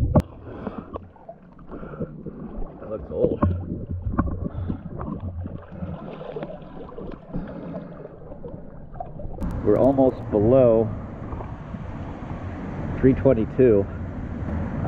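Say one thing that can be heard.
Water laps and splashes gently close by.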